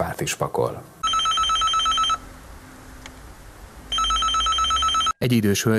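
An intercom beeps in a rapid steady pulse.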